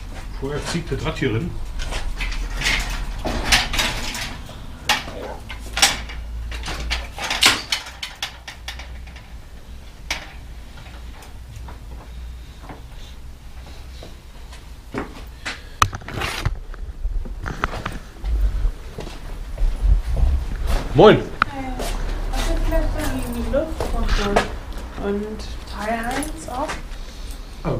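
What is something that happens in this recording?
A bicycle's parts rattle and clank as it is lifted and hung up.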